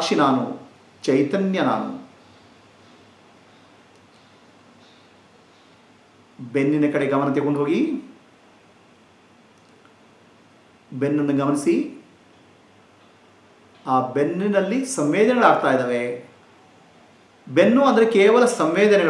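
A middle-aged man speaks calmly and slowly, close to a microphone, with long pauses.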